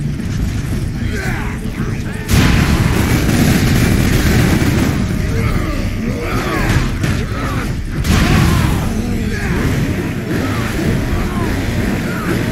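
Monsters snarl and shriek close by.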